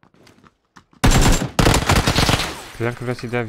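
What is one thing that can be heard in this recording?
Gunfire rattles in a rapid burst.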